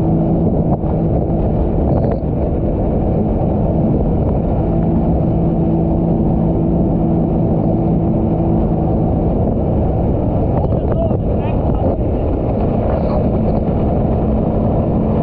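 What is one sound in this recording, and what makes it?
Wind buffets loudly past the boat.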